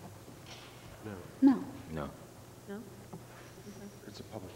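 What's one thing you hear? A man speaks through a microphone in a large hall, heard faintly from a distance.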